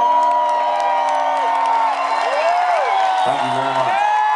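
An electric guitar plays.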